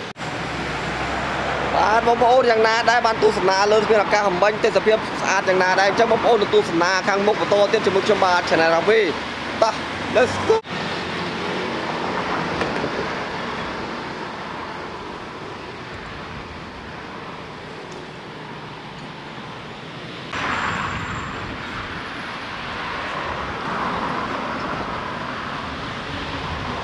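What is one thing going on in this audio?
Traffic hums steadily along a street outdoors.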